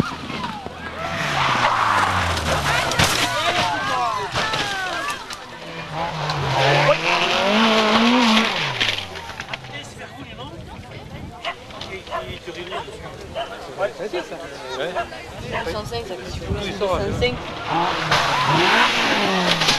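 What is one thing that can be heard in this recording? A car crashes and scrapes through bushes and gravel.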